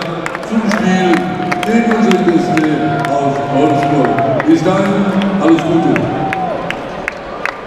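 A large crowd chants and sings in a big echoing arena.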